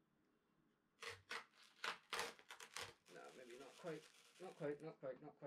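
Grip tape rips and crackles as it is peeled off a skateboard.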